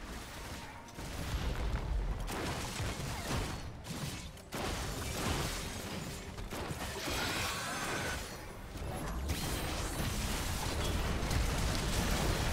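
Magic spells crackle and burst in a fast, busy fight.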